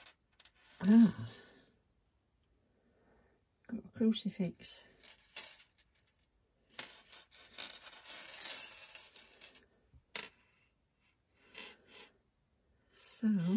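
Glass beads clink and rattle softly as they are handled.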